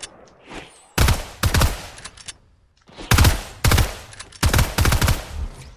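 Shotgun blasts fire in quick bursts.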